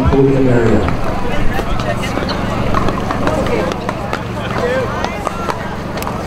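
Paddles pop sharply against a plastic ball on nearby courts.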